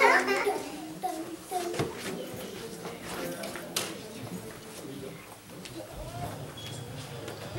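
Dancers' feet thump on a wooden stage.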